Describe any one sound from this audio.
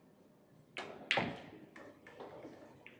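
A pool cue strikes the cue ball.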